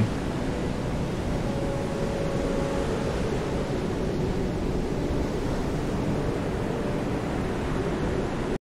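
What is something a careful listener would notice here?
Rough sea waves churn and wash steadily.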